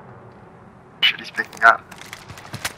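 A rifle is handled with a metallic clatter as the weapon is switched.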